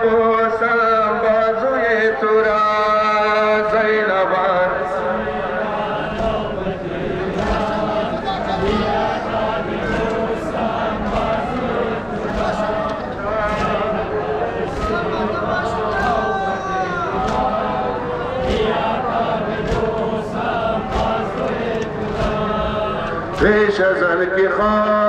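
A man chants loudly over loudspeakers, his voice echoing.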